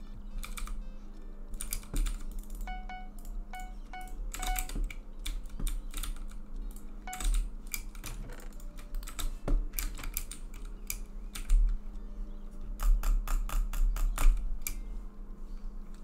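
Quick clicks and soft taps sound repeatedly.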